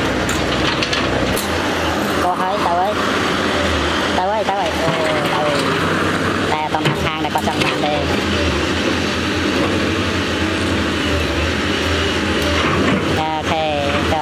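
Rocks scrape and clunk against an excavator bucket.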